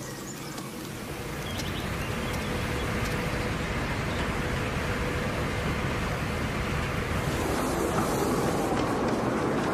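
A boat engine rumbles steadily close by.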